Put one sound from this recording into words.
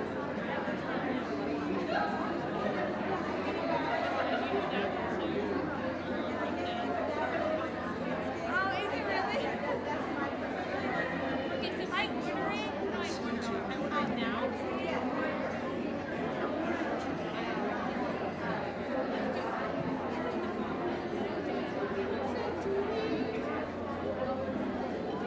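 Music plays over loudspeakers.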